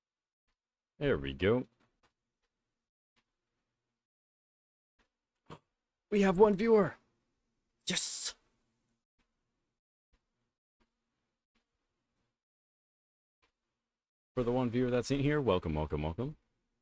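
A young man speaks close to a microphone in short bursts, with pauses of silence.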